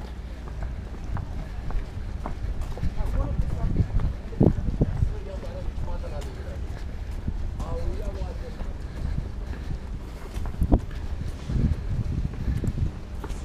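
Boots tread on pavement at a brisk walk.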